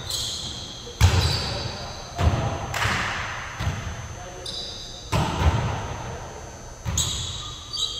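A volleyball is struck with sharp thuds in a large echoing gym.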